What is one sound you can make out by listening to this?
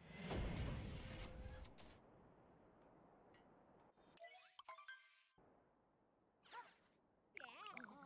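Game sound effects chime and whoosh.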